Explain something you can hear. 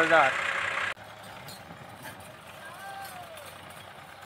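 A tractor engine idles nearby.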